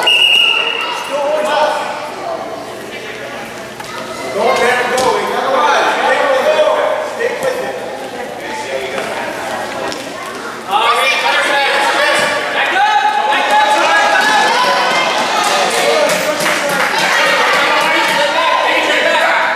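Children shout and cheer in a large echoing gym.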